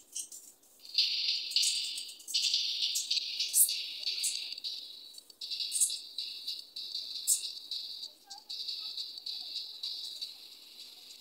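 Short high pops sound repeatedly as small figures are placed one after another.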